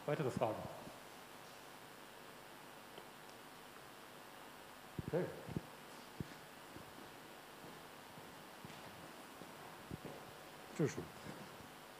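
An elderly man speaks in short bursts with pauses, in a large echoing room.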